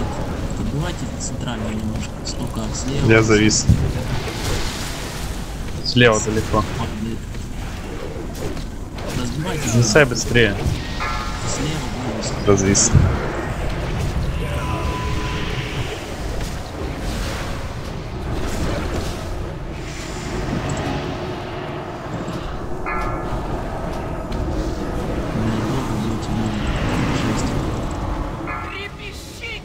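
Crackling lightning and magic spells boom and hiss in a busy battle.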